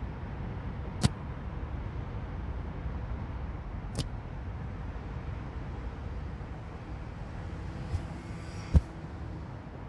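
A game character lands with a few sharp thuds.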